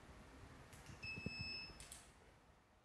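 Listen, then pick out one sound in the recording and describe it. An electronic beep sounds from a machine.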